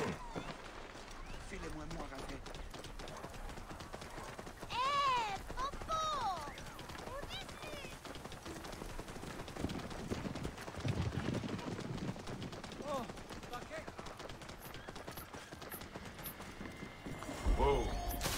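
Hooves clop steadily over stone paving.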